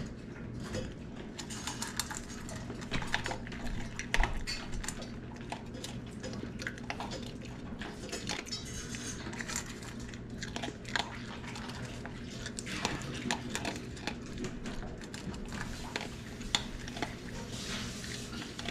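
Kibble clinks against a metal bowl.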